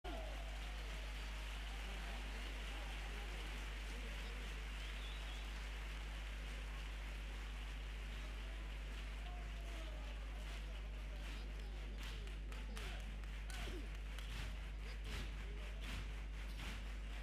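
An audience murmurs and chatters in a large hall.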